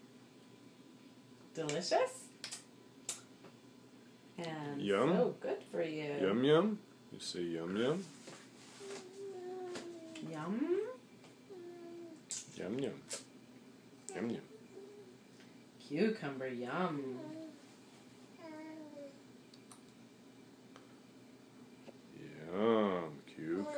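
A baby munches and slurps on food.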